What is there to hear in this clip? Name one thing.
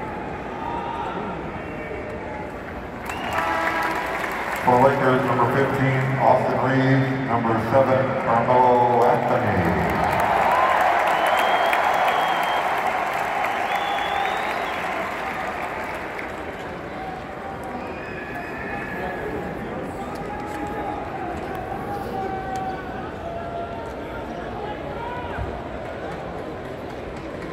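A large crowd murmurs in a big echoing arena.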